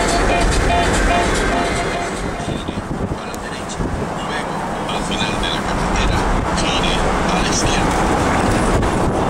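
A car rumbles steadily along a road, heard from inside.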